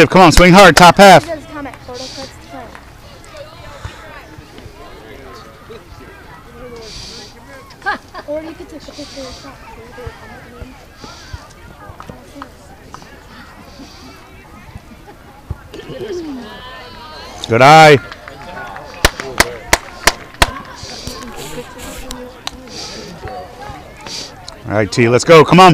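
People nearby chatter quietly in the background.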